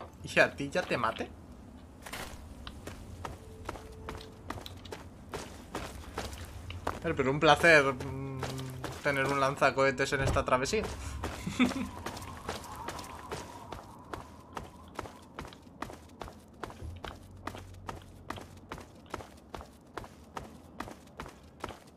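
Footsteps crunch steadily.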